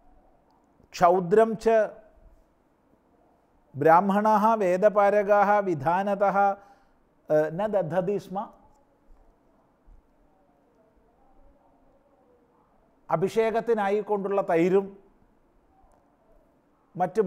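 An elderly man chants verses in a steady, melodic voice, close to a microphone.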